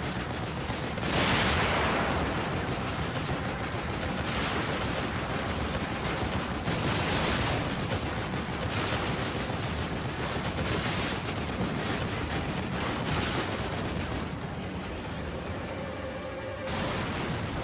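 A mounted machine gun fires in rapid bursts.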